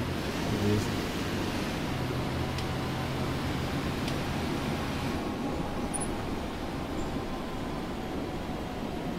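A diesel city bus engine drones while the bus drives along.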